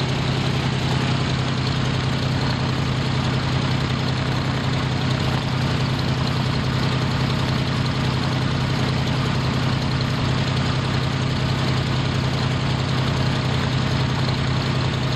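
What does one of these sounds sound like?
A propeller plane's engine idles with a loud, steady drone close by.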